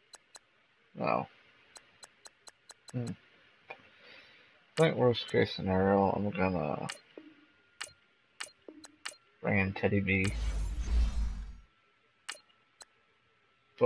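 Short electronic clicks sound as menu options are selected.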